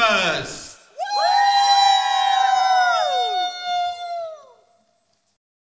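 A group of young people sing a long final note together, then trail off.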